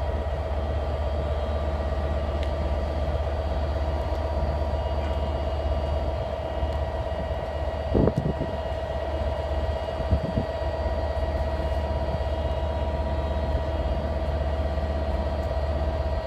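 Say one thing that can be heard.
A train engine hums steadily as a train slowly approaches.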